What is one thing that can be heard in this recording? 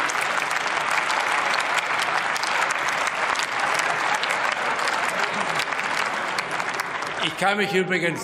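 A crowd applauds steadily in a large hall.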